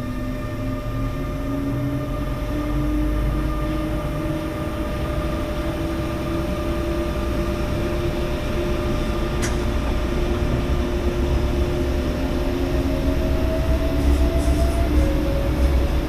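Train wheels rumble and clack over rails and switches.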